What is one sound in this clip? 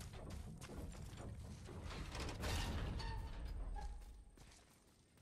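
Heavy footsteps run over stone.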